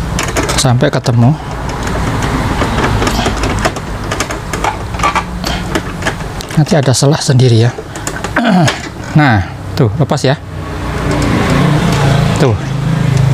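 Plastic parts of a printer click and creak as hands pry a panel open.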